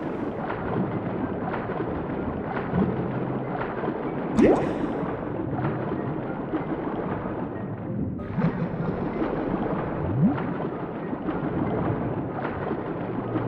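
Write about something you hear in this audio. Water swishes with steady, regular swimming strokes underwater.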